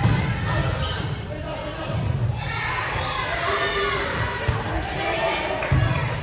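Young women shout and call out.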